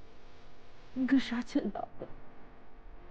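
A young man speaks softly and urgently, close by.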